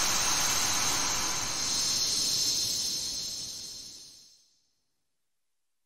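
A bright magical shimmering chime swells and then fades away.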